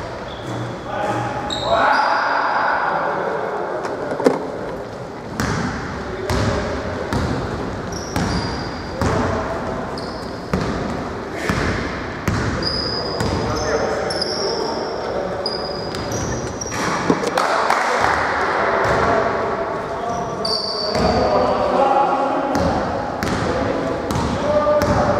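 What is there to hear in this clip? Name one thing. A basketball bounces on the floor in a large echoing hall.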